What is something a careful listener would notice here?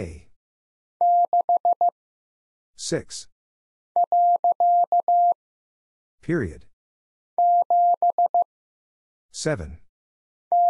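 A Morse code key taps out short and long beeps in a steady tone.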